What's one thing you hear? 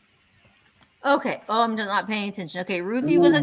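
A woman speaks animatedly over an online call.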